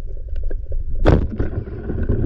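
A speargun fires with a sharp underwater snap.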